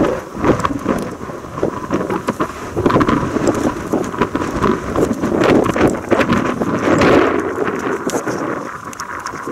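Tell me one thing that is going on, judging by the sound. A steam locomotive chuffs loudly in rapid bursts as it approaches.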